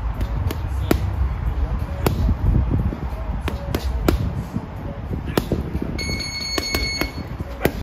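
Boxing gloves thump hard into a heavy punching bag in quick bursts.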